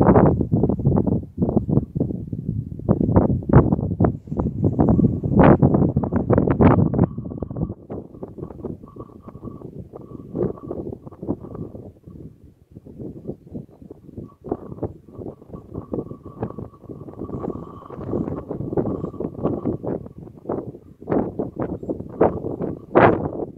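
Wind gusts loudly across the microphone outdoors.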